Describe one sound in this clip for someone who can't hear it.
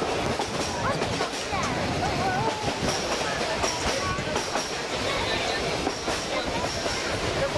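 A small train rumbles and clatters steadily along its track.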